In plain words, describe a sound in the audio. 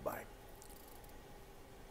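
A man slurps a sip from a mug.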